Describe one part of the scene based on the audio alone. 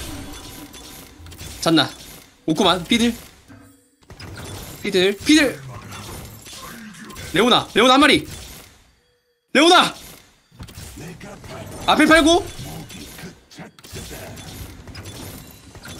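Fantasy battle sound effects clash and zap.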